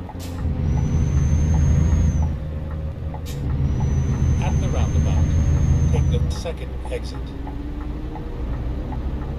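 A truck engine rumbles steadily while driving, easing off near the end.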